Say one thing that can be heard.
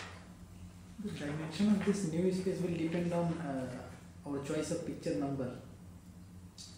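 A man speaks calmly in a large echoing room.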